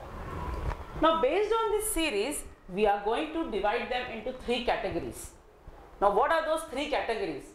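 A woman speaks clearly and with animation into a close microphone.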